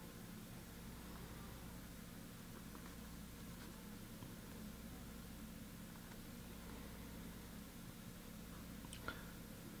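A paintbrush dabs and taps lightly on paper.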